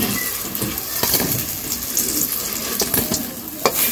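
Fried pieces clatter into a metal bowl.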